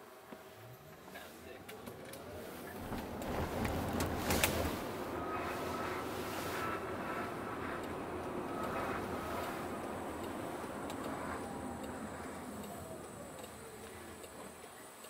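Tyres rumble on the road inside a car.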